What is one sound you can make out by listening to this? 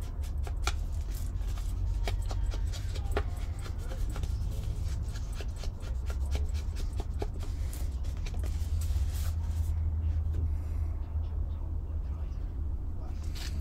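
A rubber stamp taps and presses onto paper.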